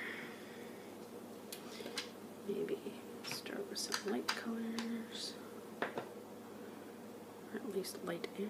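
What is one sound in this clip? Plastic ink pad cases click and knock against each other and the table.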